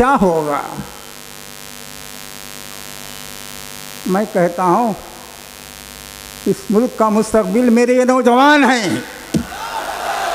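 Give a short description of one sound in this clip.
An elderly man recites slowly in a drawn-out voice through a microphone.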